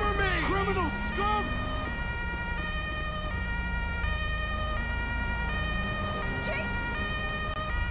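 A police siren wails nearby.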